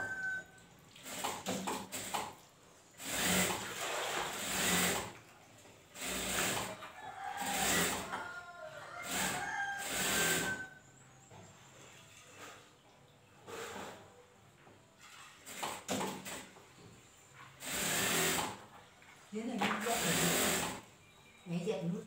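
A sewing machine runs in short, loud bursts.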